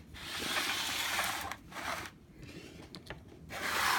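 Plastic toy figures knock softly against a wooden table.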